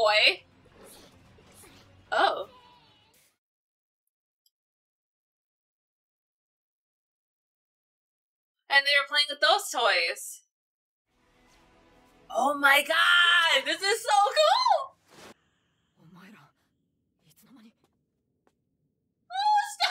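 A young woman talks animatedly into a microphone.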